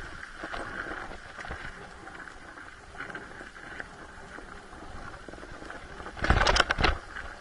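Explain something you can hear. A dirt bike engine buzzes steadily close by.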